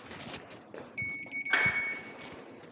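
A card reader beeps briefly.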